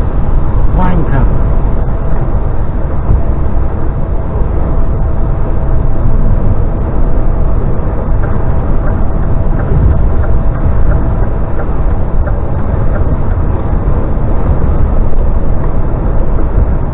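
A heavy vehicle's engine rumbles steadily while driving.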